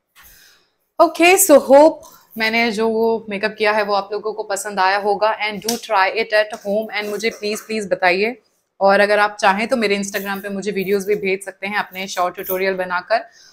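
A young woman speaks with animation, close to the microphone.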